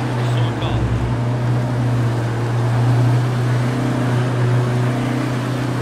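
A car engine hums steadily as a vehicle drives along a road.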